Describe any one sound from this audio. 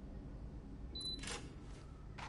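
A card reader beeps.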